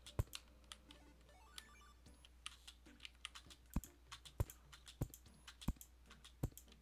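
Short game sound effects tap and click in quick succession.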